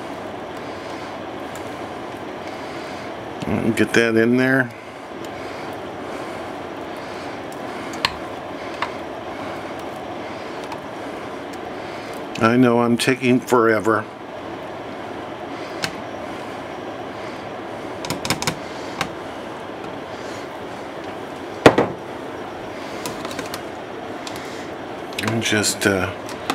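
Water simmers steadily in a pot.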